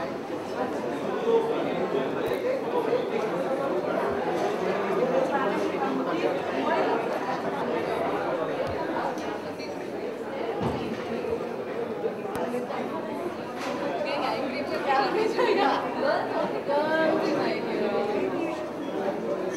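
A crowd of men and women chatters throughout, in a room with some echo.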